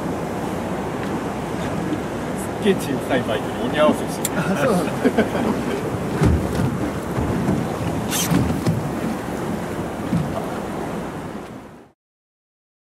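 Wind blows steadily over open water.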